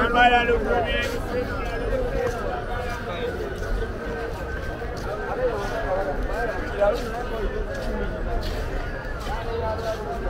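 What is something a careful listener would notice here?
Footsteps shuffle on a paved path.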